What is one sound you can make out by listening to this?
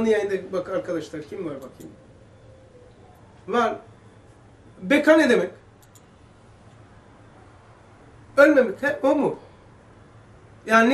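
An elderly man speaks calmly into a nearby microphone, pausing between phrases.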